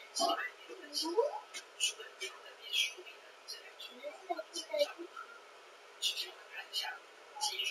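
A plastic bowl clatters on a table.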